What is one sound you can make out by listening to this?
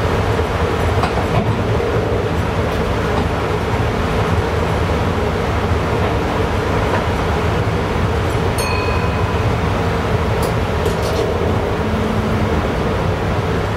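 Wheels clatter rhythmically over the rail joints.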